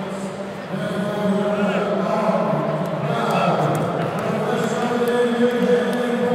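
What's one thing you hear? A man announces loudly through a microphone over loudspeakers in a large echoing hall.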